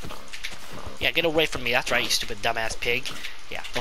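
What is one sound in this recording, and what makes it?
A pig squeals.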